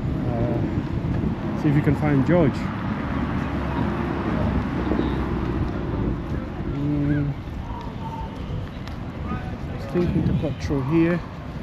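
Traffic rumbles steadily on a nearby road outdoors.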